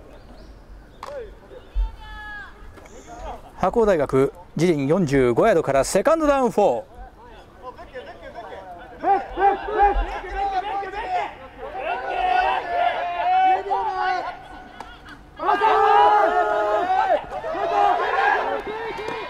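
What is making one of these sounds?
Young men shout and cheer from the sideline outdoors.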